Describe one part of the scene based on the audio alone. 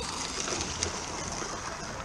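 Small goods wagons rattle over the rails.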